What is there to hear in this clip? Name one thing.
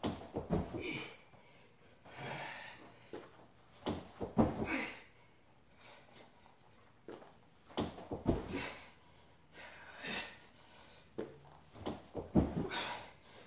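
Feet thump on a wooden floor at intervals.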